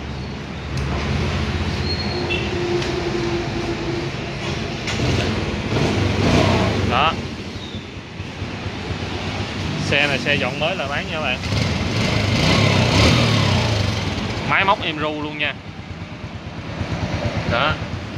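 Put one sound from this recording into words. A motorcycle engine idles with a steady low putter.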